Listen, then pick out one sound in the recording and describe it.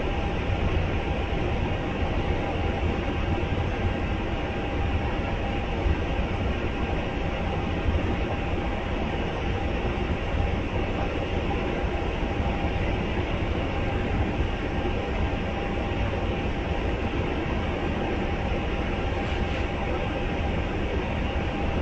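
A train's engine idles with a steady, low rumble and hum.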